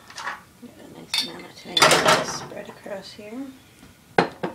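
A glass jar clinks as it is handled.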